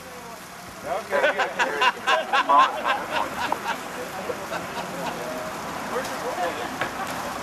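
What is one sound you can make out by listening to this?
A group of men shout excitedly together.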